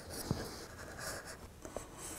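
A marking knife scratches lightly across wood.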